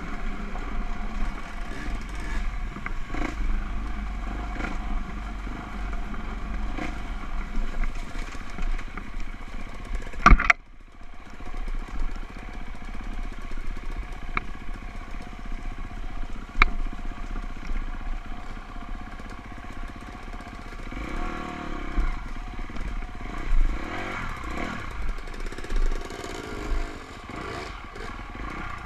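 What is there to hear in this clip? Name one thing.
A dirt bike engine revs and buzzes close by.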